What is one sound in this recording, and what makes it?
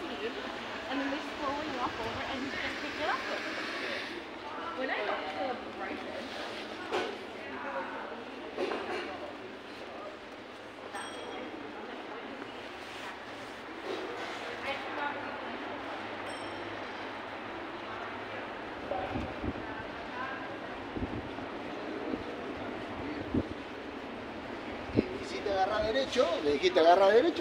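Voices of passers-by murmur in an outdoor street.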